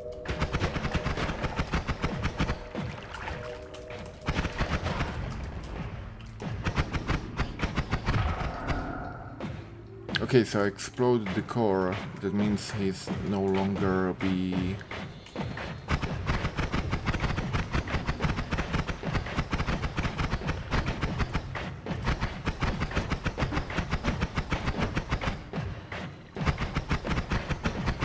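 Rapid crackling blasts of magic spells fire over and over.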